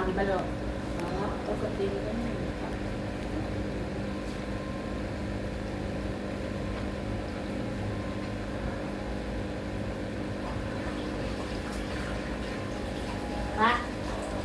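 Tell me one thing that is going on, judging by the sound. Air bubbles gurgle steadily underwater.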